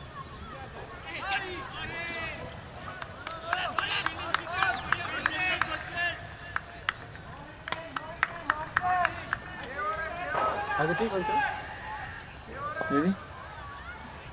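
Men on a field call out to one another.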